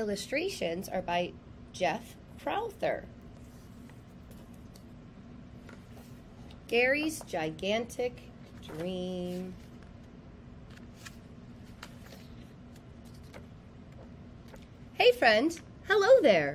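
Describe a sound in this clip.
A woman reads aloud with animation, close to a microphone.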